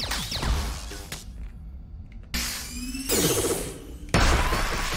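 Electric zaps crackle in bursts.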